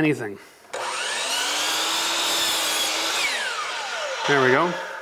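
A miter saw whirs loudly as its blade spins up and winds down.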